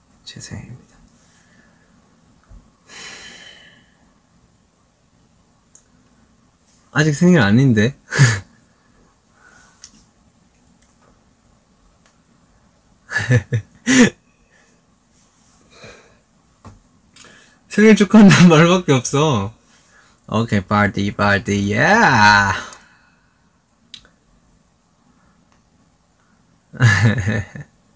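A young man talks casually and playfully, close to a microphone.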